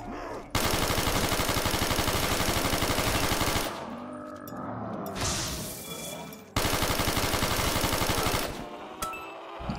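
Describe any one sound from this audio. Rapid automatic gunfire rattles in fast bursts.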